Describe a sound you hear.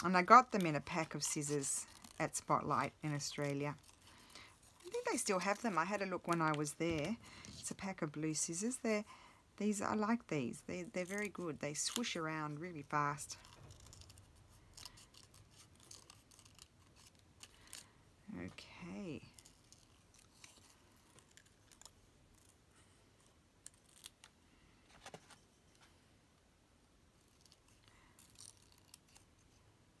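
Small scissors snip through paper.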